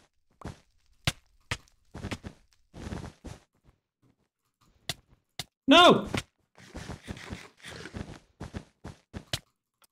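A sword strikes an opponent with quick hits.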